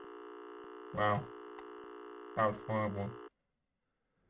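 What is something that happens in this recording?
A young man speaks briefly through a microphone.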